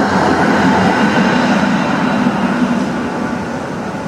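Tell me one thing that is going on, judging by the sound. A tram rolls past with a rumble and a squeal, then fades away.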